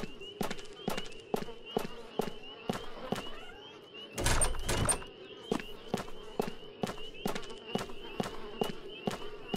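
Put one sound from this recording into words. Footsteps walk steadily on hard stone.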